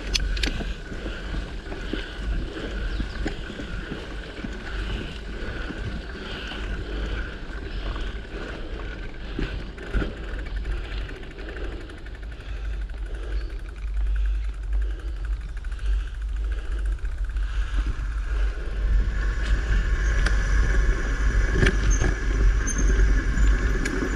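Footsteps crunch steadily on a dirt trail.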